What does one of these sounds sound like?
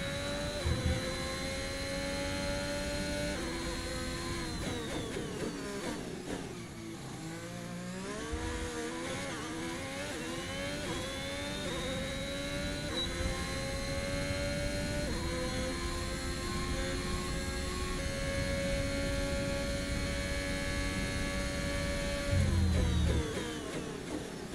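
A racing car engine screams at high revs, dropping in pitch as it slows into a corner and rising again as it speeds up.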